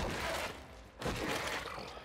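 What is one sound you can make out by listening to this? An energy beam fires with a crackling hiss.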